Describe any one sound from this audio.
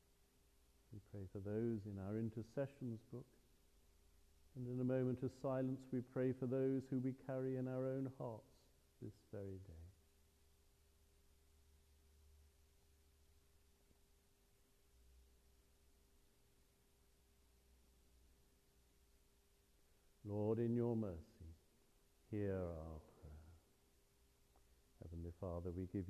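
An elderly man speaks slowly and calmly, with long pauses, in a lightly echoing room.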